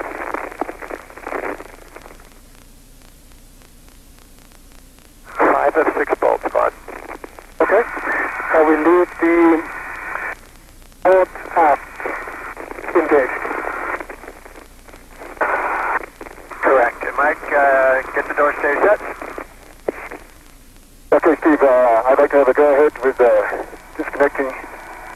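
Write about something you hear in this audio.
A man talks calmly over a crackly radio link.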